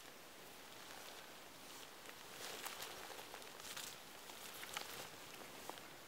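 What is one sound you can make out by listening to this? Footsteps rustle through low, dry brush.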